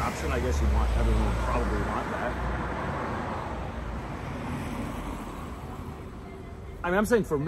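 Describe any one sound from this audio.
A man speaks calmly, close to a headset microphone.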